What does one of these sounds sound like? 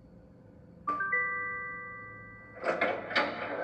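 A video game beeps with electronic tones from a tablet speaker.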